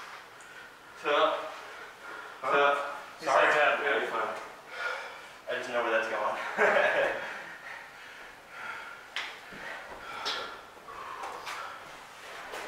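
A man talks calmly nearby in a room with a slight echo.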